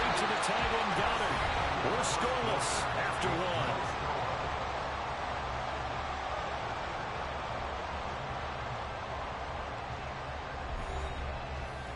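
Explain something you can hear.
A large stadium crowd roars and cheers steadily, slowly growing quieter.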